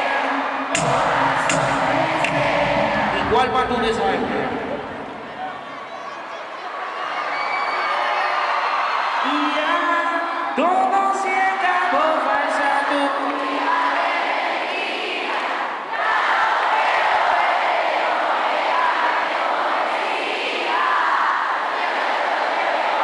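A young man sings and raps into a microphone.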